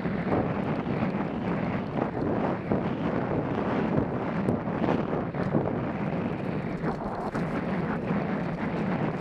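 Wind rushes loudly past a helmet.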